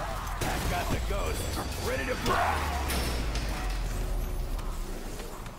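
Electric weapons crackle and zap.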